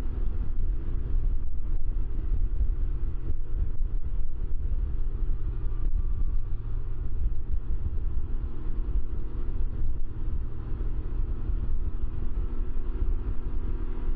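A motorcycle engine hums steadily while cruising on a highway.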